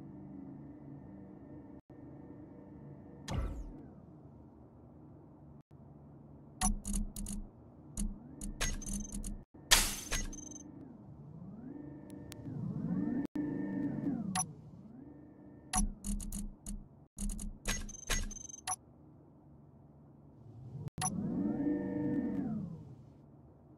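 A spacecraft's thrusters hum and swell in pitch as it lifts and hovers.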